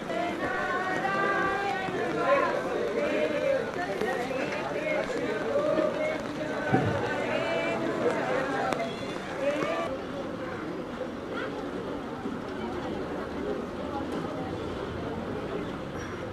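A crowd of men and women talks and calls out loudly all around.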